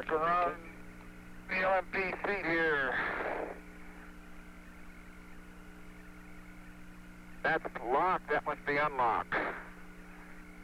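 A man speaks calmly over a crackly radio link.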